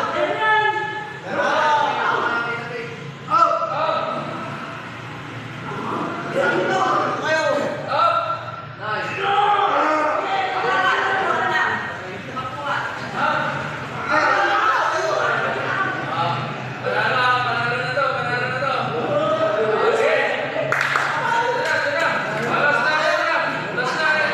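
Young men talk and call out loudly nearby.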